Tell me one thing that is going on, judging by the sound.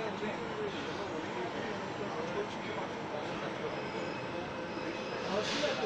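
A train hums steadily.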